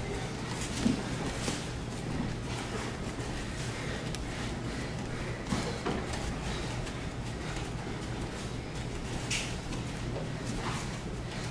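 Judo jackets rustle and snap as two men grip each other.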